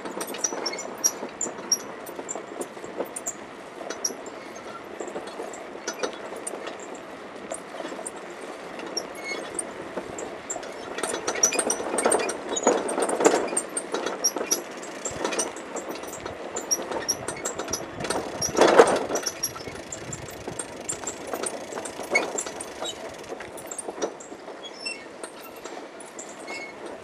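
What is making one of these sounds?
Wind gusts outdoors across the microphone.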